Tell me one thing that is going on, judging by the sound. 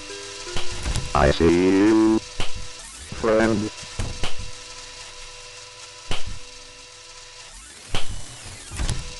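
Footsteps tap steadily along a hard floor.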